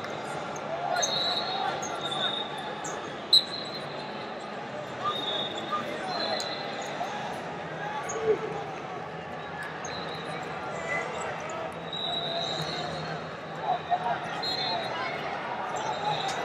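People shout encouragement from the side.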